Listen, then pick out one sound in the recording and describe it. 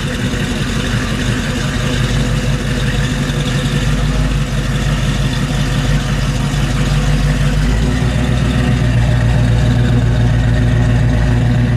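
A car engine idles with a deep, steady rumble from the exhaust close by.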